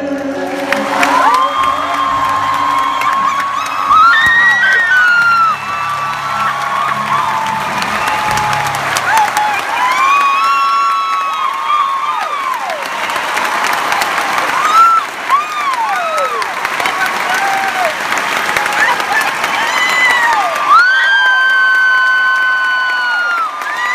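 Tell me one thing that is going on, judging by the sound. Young women sing loudly through a sound system in a large hall.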